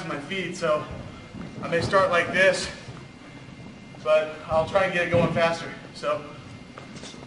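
A man speaks with animation in a large echoing hall.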